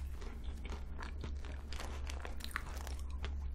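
Crumbly pastry crackles and rustles as fingers break it apart.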